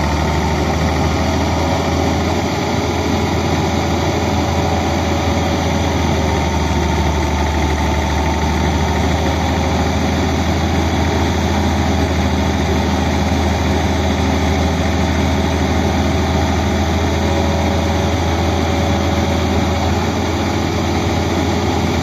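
A tracked excavator's diesel engine rumbles as the machine works its arm.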